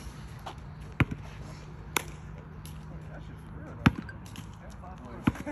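A basketball bounces on an asphalt court outdoors.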